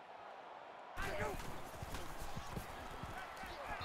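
Football players collide in a tackle.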